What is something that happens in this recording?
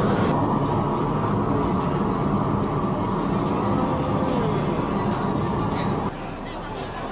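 Seafood sizzles on a hot grill.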